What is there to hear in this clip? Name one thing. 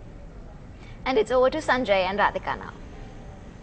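A young woman speaks clearly and calmly into a microphone.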